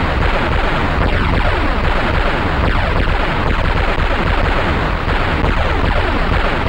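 Gunfire rattles quickly in a game.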